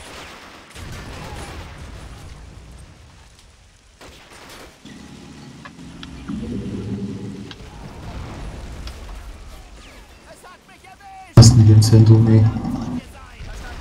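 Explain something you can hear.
Explosions boom in a battle.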